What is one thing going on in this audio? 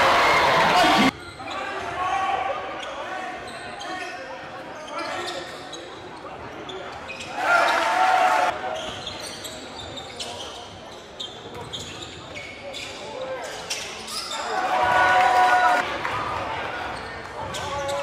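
Sneakers squeak sharply on a hard court.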